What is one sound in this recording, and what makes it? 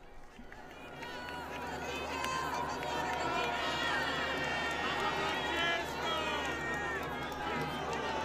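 A large outdoor crowd cheers and shouts excitedly, growing louder.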